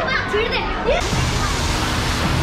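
A fountain splashes and hisses steadily.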